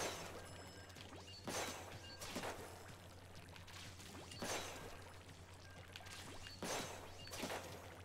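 Ink weapons fire in splattering, swooshing bursts.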